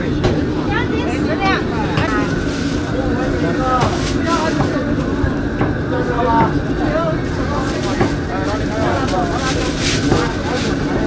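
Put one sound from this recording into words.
A crowd of people chatter in a busy outdoor market.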